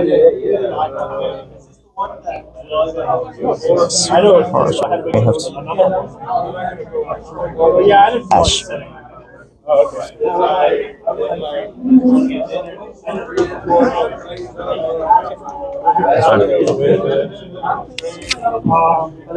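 Cards tap and slide on a play mat.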